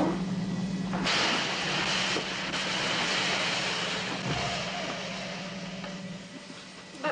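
An escape slide inflates with a loud rushing hiss.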